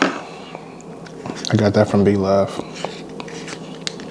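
Shellfish meat squishes and tears apart by hand.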